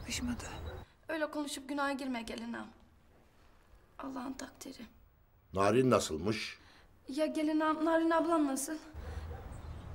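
A young woman on a phone speaks with worry.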